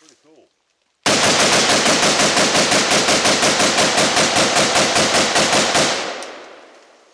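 A rifle fires a rapid burst of loud shots that echo through the woods.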